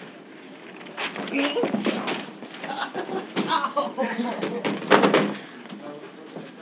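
Teenage boys talk and shout with excitement nearby.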